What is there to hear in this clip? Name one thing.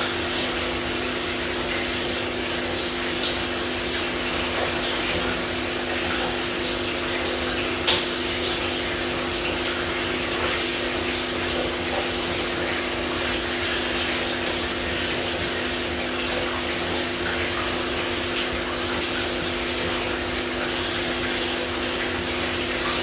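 Soapy lather squishes as hands scrub wet hair.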